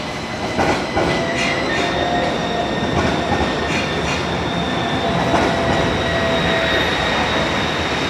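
Tram wheels squeal on curved rails.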